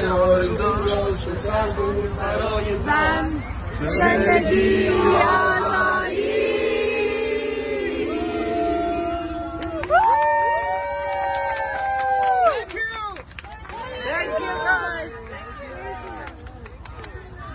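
A crowd of men and women cheers and shouts loudly nearby outdoors.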